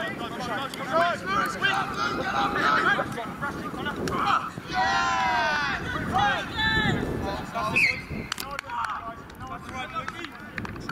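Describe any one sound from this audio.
Young men shout and call out to each other outdoors across an open field.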